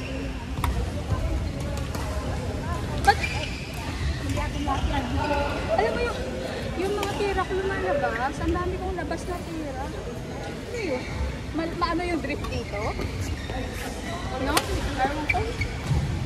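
Shoes squeak on a court floor.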